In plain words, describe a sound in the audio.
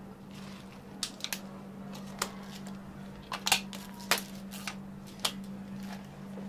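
Plastic lids snap onto cups with sharp clicks.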